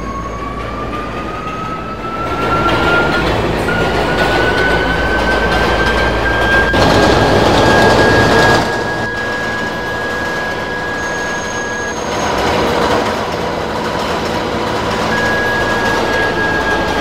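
A subway train's electric motors whine, rising in pitch as it speeds up.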